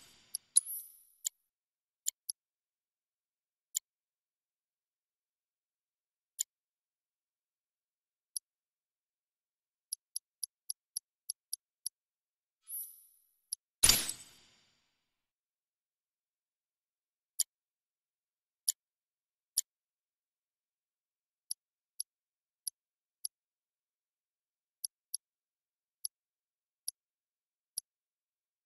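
Soft menu clicks and blips tick as selections change.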